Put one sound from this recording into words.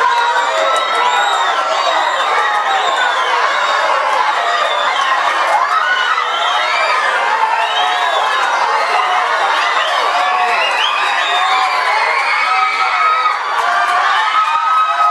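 A crowd of spectators cheers and shouts loudly throughout.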